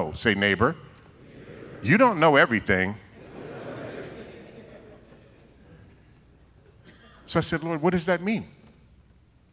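An elderly man speaks with animation into a microphone, heard through loudspeakers in a large echoing hall.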